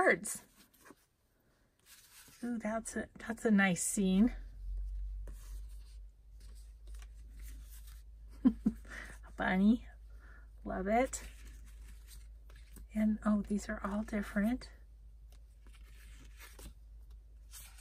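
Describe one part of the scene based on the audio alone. Paper cards rustle and tap against each other close by.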